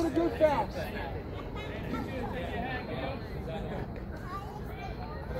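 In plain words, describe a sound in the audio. Men and women talk and call out nearby outdoors.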